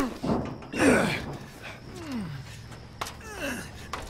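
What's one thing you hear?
Boots clank on the rungs of a metal ladder.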